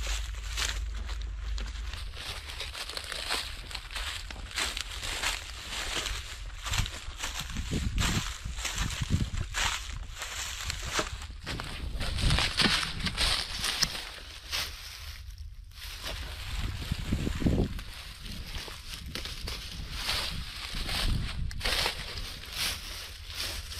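Footsteps crunch through dry stubble and grass.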